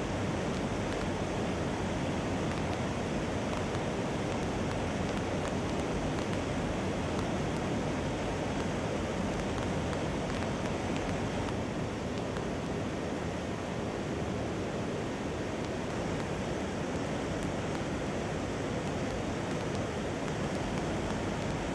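Jet engines roar steadily as military aircraft fly past.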